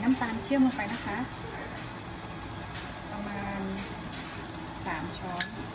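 Liquid pours from a jar into a pan of sauce.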